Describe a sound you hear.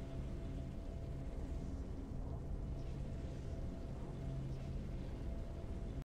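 Triumphant game music plays with a low, steady drone.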